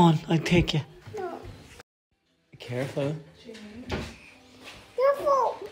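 A little girl talks and squeals playfully close by.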